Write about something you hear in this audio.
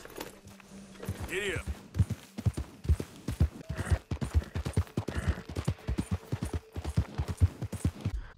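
Horse hooves thud rhythmically on soft ground.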